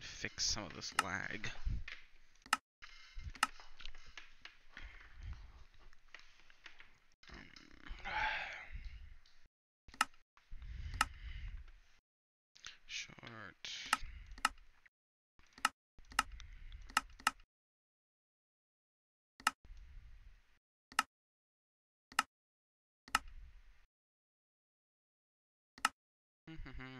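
Menu buttons click sharply, one at a time, again and again.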